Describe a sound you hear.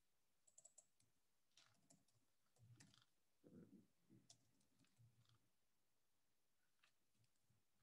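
Keyboard keys click in quick bursts as someone types.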